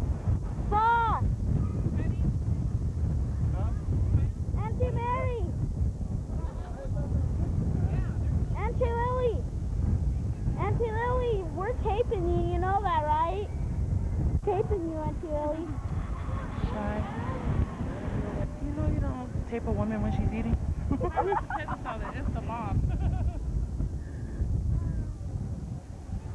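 A group of women and children chat with animation outdoors.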